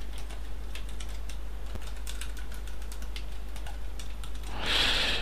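Keys on a keyboard click rapidly as someone types.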